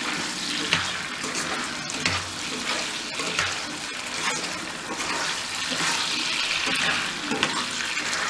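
Oil sizzles and crackles steadily in a hot pan.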